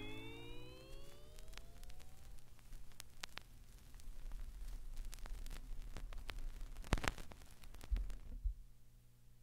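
A vinyl record crackles and pops under a turntable needle.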